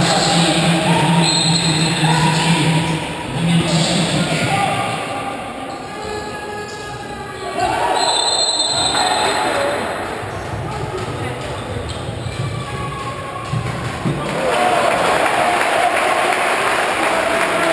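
A crowd cheers and chants throughout a large echoing hall.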